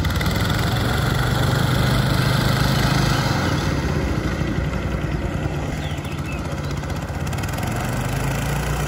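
Mower blades whir through grass.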